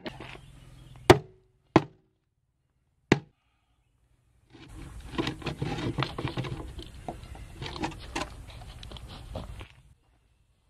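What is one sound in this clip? A plywood board knocks and scrapes against concrete.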